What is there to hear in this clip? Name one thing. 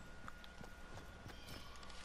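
Quick footsteps patter across the ground.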